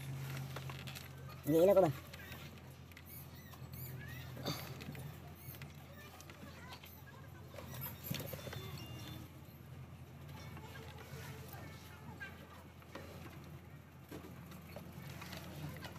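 A rubber drive belt is shifted by hand, with soft scrapes and clicks.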